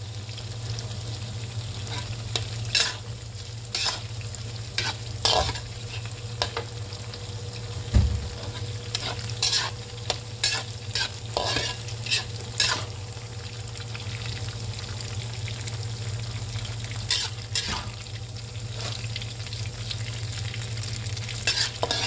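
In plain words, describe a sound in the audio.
Food sizzles gently in hot oil.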